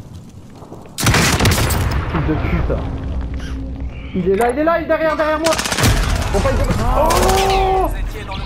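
Explosions boom and rumble nearby.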